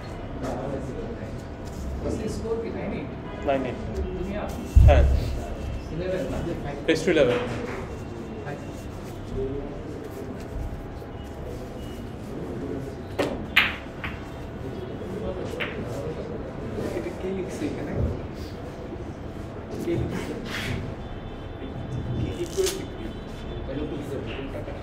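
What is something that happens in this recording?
Men talk quietly in the background.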